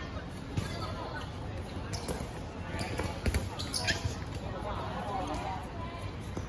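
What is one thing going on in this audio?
Girls chatter and call out across the court.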